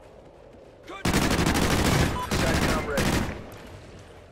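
A rifle fires rapid bursts of shots up close.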